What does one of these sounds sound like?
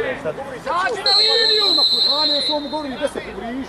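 A referee's whistle blows a long, shrill blast.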